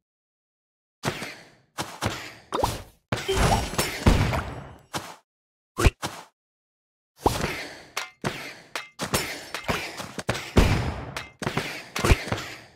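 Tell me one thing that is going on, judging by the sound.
Game battle sounds of hits and magic blasts burst out in quick runs.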